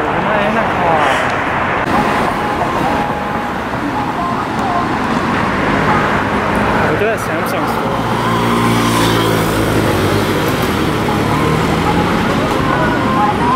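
Traffic hums along a busy street at night.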